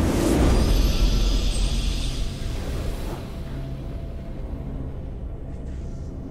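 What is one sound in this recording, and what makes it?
A triumphant game victory fanfare swells and then slowly fades.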